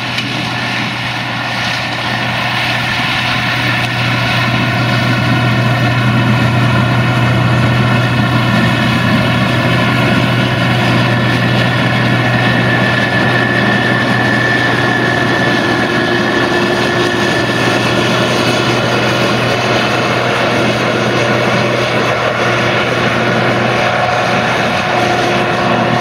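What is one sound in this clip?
A combine harvester's engine drones loudly and steadily close by.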